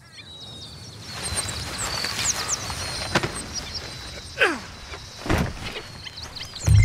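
Birds chirp outdoors.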